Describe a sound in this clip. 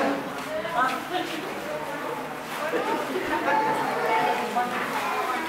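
Children chatter and call out nearby in a room with a slight echo.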